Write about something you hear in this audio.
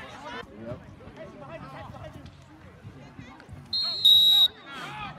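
A crowd of spectators chatters and cheers outdoors at a distance.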